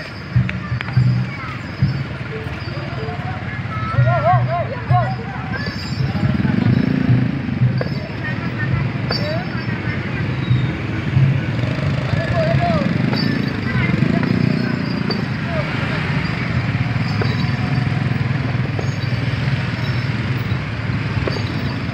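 Motorbike engines hum and putter as they ride slowly past.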